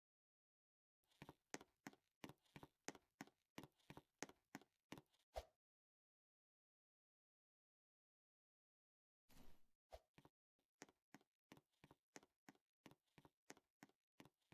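Quick footsteps patter in a steady running rhythm.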